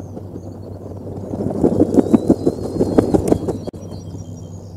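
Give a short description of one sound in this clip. Dry nest straw rustles and crackles as an eaglet shifts about.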